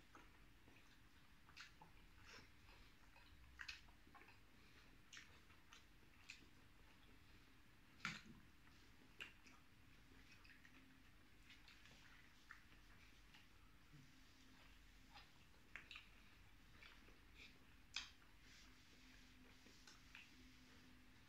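Two men chew food noisily with wet smacking sounds close by.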